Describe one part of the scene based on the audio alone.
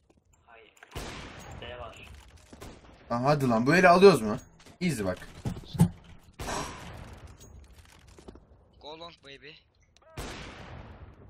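A sniper rifle fires a loud single shot several times.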